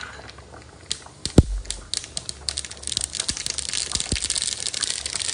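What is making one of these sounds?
Hot oil sizzles and crackles in a small pan.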